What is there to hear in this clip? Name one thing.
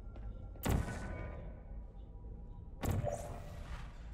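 A gun fires with a sharp electric zap.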